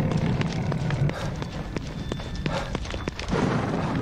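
Footsteps run quickly on hard ground.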